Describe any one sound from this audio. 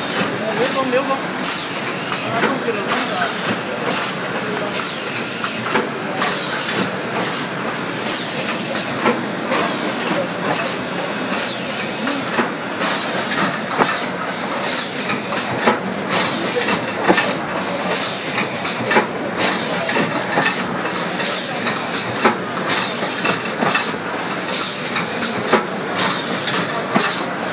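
A packaging machine hums and clatters steadily.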